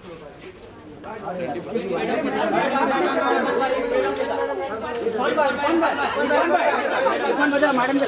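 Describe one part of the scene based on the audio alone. Several men talk and call out at once in a crowd close by.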